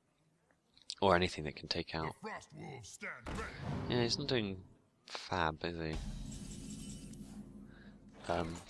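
Fantasy game sound effects chime and whoosh as cards are played.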